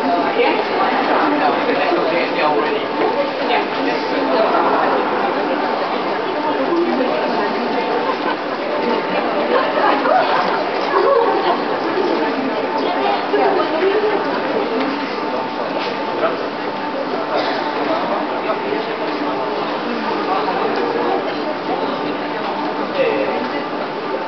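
A crowd of men and women chatter in a large echoing hall.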